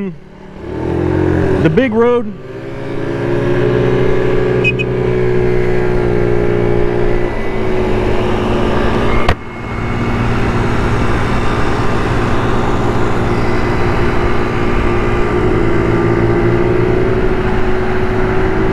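A scooter engine hums steadily close by as it rides along.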